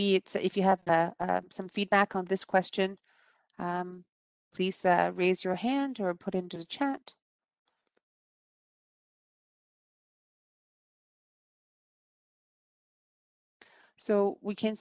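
A woman speaks calmly over an online call, pausing now and then.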